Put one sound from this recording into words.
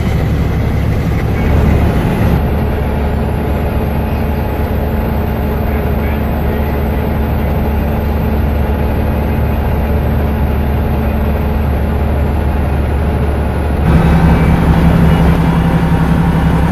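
A car's engine hums steadily at highway speed.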